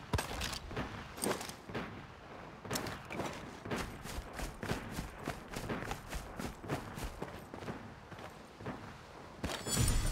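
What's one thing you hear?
Footsteps rustle steadily through grass and brush.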